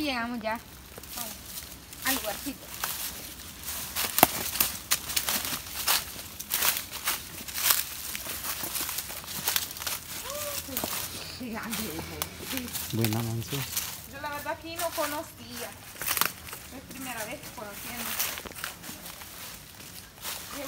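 Footsteps crunch on dirt and dry leaves.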